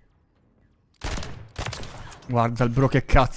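Gunshots fire in a rapid burst.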